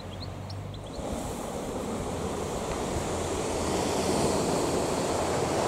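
Waves wash onto a sandy beach below.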